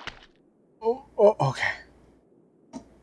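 A man speaks briefly with animation, close to a microphone.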